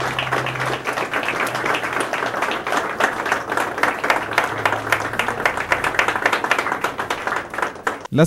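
A group of people applaud and clap their hands steadily.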